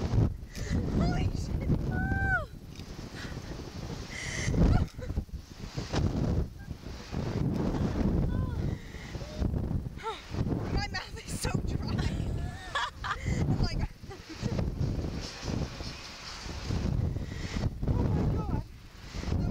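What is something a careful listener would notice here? Wind rushes loudly past a microphone outdoors.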